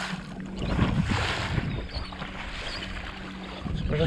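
A fishing reel whirs and clicks as line is wound in.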